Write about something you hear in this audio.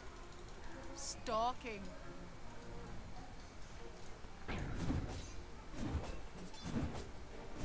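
Magical whooshes and blasts ring out from a video game.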